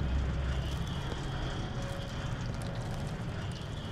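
Water rushes and splashes.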